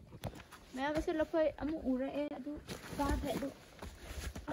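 A woman speaks close by, with animation.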